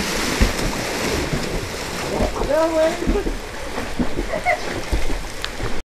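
Water flows and rushes steadily outdoors.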